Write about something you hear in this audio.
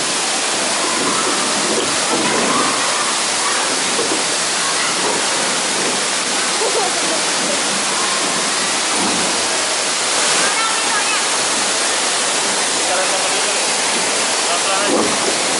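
A waterfall roars steadily nearby.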